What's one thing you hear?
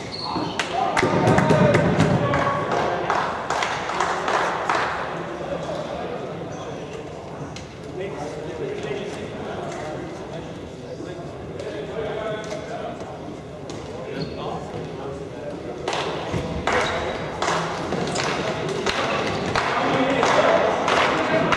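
Shoes squeak on the hall floor.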